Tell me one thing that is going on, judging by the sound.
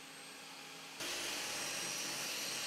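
A table saw blade cuts into wood.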